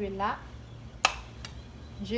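A metal spoon clinks sharply against a pan.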